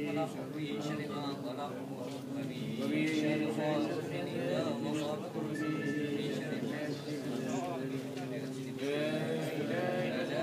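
A group of men chant together in unison, close by.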